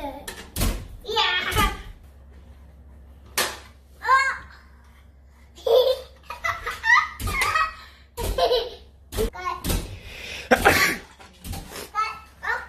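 A toddler laughs and squeals.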